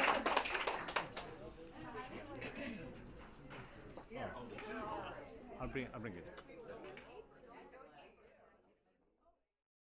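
A crowd of diners chatters around a room.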